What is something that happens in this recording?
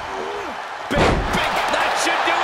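A heavy body slams onto a wrestling ring mat with a thud.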